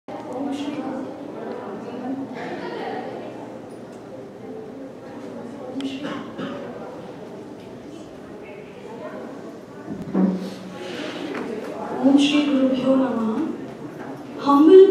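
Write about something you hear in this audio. A young woman speaks into a microphone over a loudspeaker in an echoing room.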